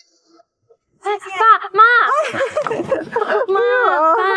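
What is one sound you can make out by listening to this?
A woman calls out with excitement.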